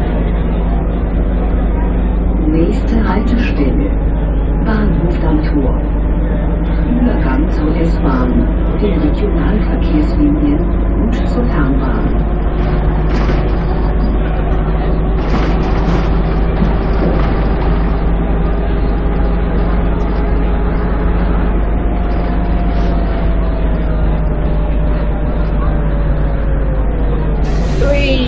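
A bus engine hums steadily, its pitch slowly rising and then falling.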